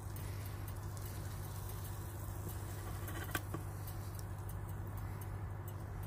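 Food slides and scrapes out of a metal pan onto a plate.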